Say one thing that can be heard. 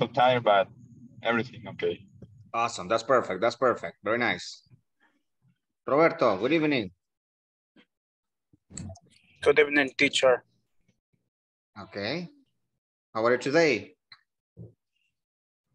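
A young man speaks calmly over an online call.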